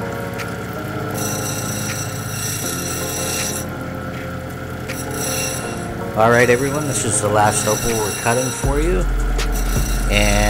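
A grinding wheel whirs steadily.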